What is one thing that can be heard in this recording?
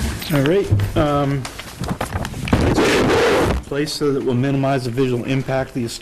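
Papers rustle and shuffle.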